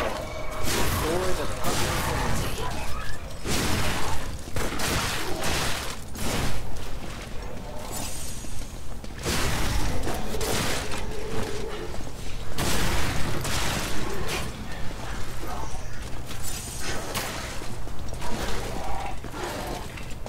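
Weapons clash and strike in a fight, with sharp hits.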